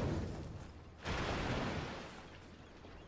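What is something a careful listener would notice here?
A rocket explodes in water with a splash.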